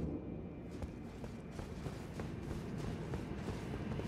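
Armoured footsteps clank on stone paving.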